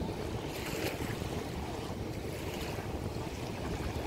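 Small waves lap gently at the shore.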